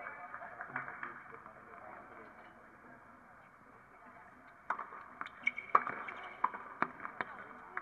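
Tennis balls pop off racket strings in a rally.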